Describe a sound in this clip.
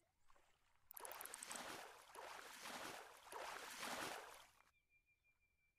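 A fish splashes and thrashes in the water.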